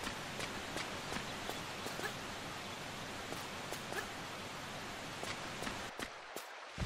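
Footsteps patter quickly across soft ground.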